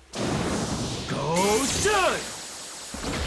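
A young man shouts with effort.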